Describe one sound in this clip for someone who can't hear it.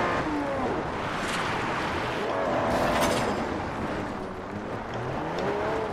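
Tyres skid and crunch on gravel.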